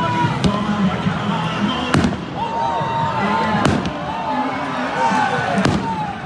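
Firecrackers bang sharply now and then.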